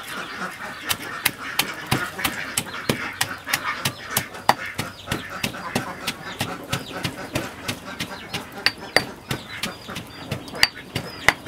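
A wooden pestle pounds steadily in a stone mortar, with quick thuds.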